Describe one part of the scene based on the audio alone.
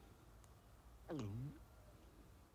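A horn toots with a short falling note.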